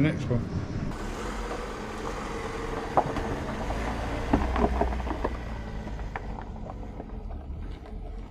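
A van's engine runs as it pulls away.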